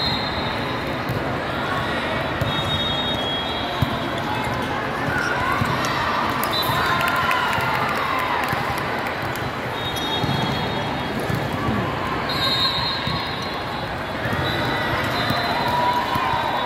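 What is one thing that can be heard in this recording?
A crowd of young women and girls chatters and calls out in a large echoing hall.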